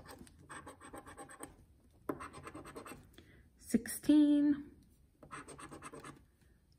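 A coin scratches rapidly across a scratch-off card in short bursts.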